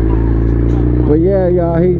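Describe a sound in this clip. A motorcycle engine revs up sharply.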